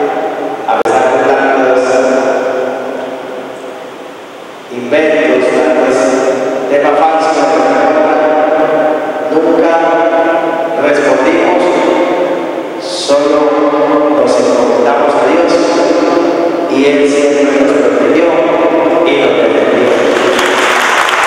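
A man sings into a microphone with long, held notes.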